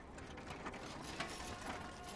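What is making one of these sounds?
A rickshaw rolls over dirt with creaking wheels.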